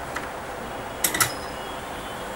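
A soldering iron clicks as it is set down in its stand.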